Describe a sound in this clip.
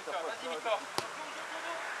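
A football is kicked with a thump.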